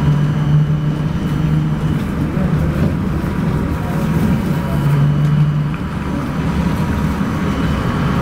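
Car tyres roll on the road nearby.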